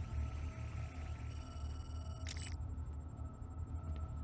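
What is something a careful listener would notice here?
Footsteps walk slowly on a hard floor.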